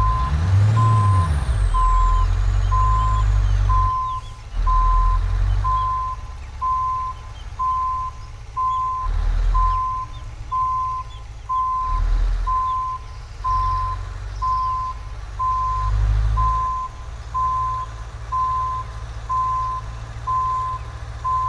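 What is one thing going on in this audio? A truck engine rumbles low and steady, rising and falling in short surges.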